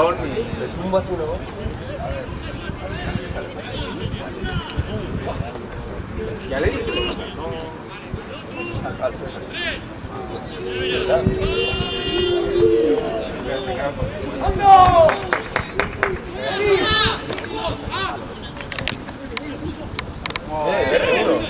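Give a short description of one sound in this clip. Men shout and call out across an open field outdoors.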